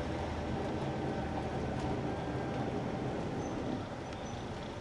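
A bus drives past on the street.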